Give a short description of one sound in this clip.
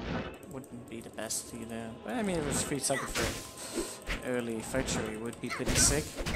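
Magic spells crackle and whoosh during a fight.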